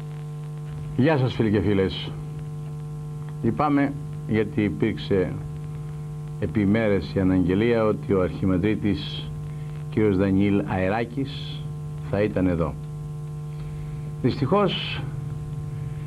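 A middle-aged man speaks calmly and steadily, close to a microphone.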